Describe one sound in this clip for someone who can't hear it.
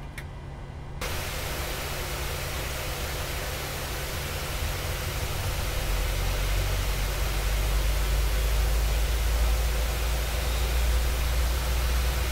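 A jet engine roars steadily and grows louder.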